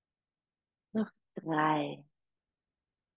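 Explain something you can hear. A young woman speaks calmly and briefly through an online call.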